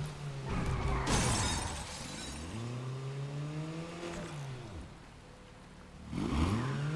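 Tyres screech on a wet road.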